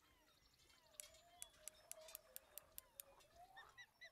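A fishing reel clicks rapidly as it winds in line.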